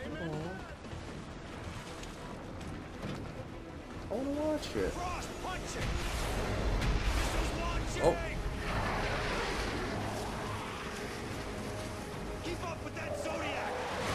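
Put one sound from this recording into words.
A young man talks close to a microphone.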